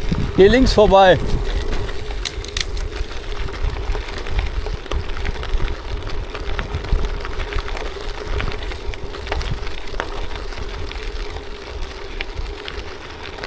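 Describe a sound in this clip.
Bicycle tyres crunch over loose gravel.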